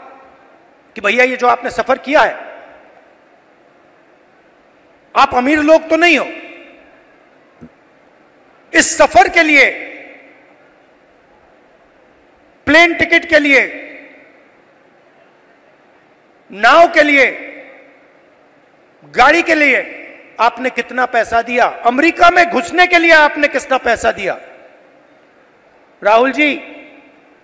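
A man speaks with emotion through a microphone and loudspeakers, in short bursts with pauses, his voice echoing.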